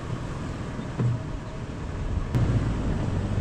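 A vehicle body rattles and knocks over bumps.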